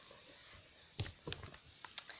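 A paperback book is set down on a table with a soft knock.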